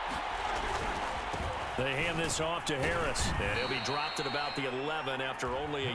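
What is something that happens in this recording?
Football players collide in a tackle with heavy thuds.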